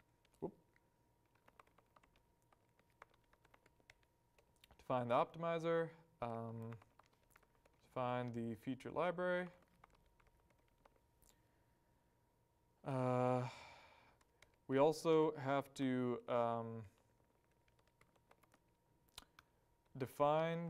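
Laptop keys click softly as someone types.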